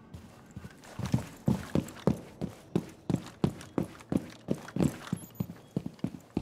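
Footsteps thud steadily on hard floor and stairs.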